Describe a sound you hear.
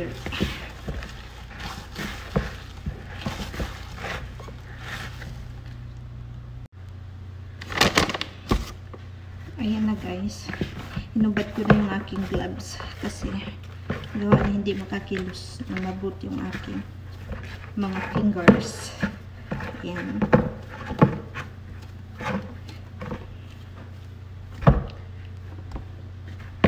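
Hands knead bread dough in a plastic bowl, squelching.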